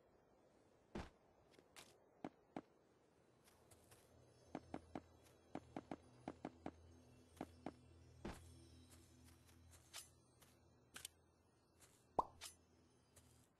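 Blocks are placed with quick, sharp clicks.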